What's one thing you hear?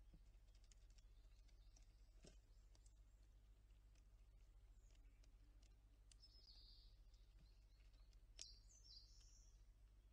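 A squirrel crunches seeds up close.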